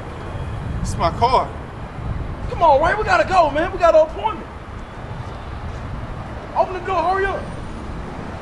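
A young man speaks urgently and close by.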